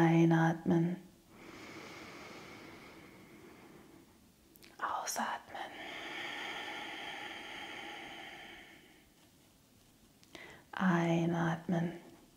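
A young woman speaks calmly and clearly close to a microphone.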